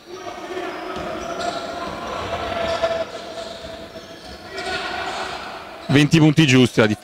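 Sneakers squeak on a court in a large echoing hall.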